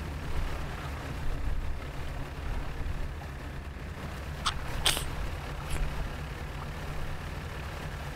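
Water splashes around a boat.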